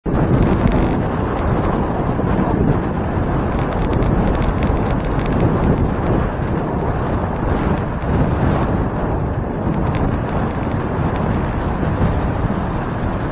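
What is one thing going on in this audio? Wind rushes and buffets loudly past a moving bicycle.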